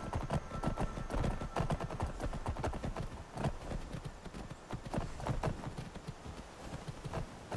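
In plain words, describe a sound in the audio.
Horse hooves clop steadily on stone and dirt.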